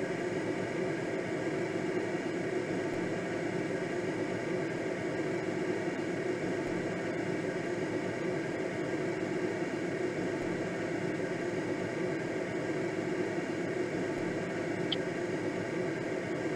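Wind rushes steadily past a gliding aircraft.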